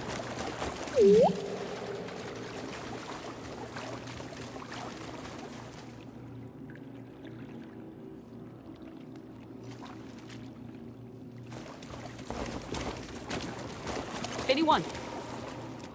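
A small robot beeps and warbles.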